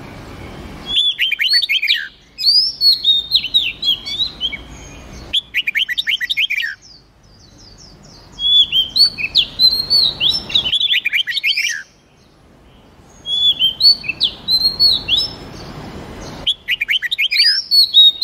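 Songbirds sing loud, quick, chirping phrases in repeated bursts.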